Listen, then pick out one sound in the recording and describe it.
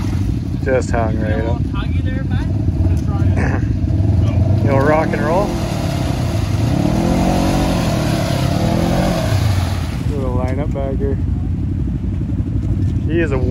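Tyres churn and splash through thick mud.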